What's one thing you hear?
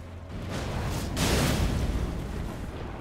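A loud magical blast crackles and roars.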